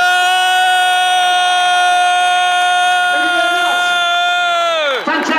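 A man sings one long, high note loudly through loudspeakers, and the note slides down at the end.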